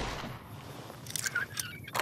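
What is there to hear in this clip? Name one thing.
A lock rattles as it is picked.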